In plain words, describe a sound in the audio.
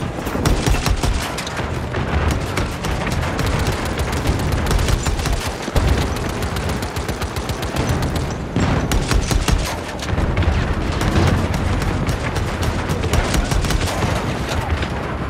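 Rapid gunfire rattles and cracks.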